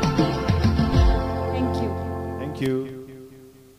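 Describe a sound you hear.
A man sings loudly through a microphone, then fades out.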